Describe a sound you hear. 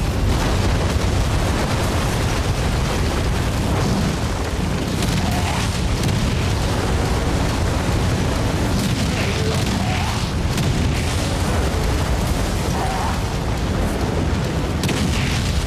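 Stone buildings crumble and crash down in a low rumble.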